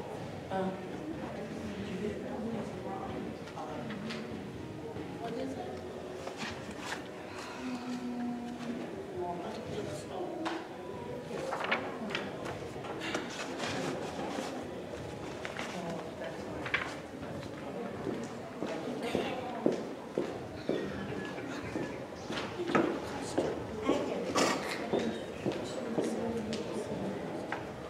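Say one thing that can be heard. An adult speaks calmly through a microphone in a large, echoing hall.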